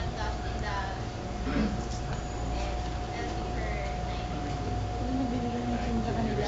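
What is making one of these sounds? A young woman talks quietly nearby.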